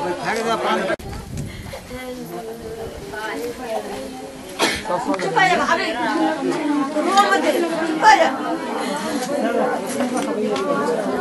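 Women talk with agitation nearby.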